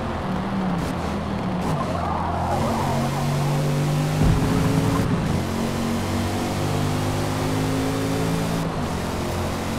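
A car engine roars and revs up through the gears.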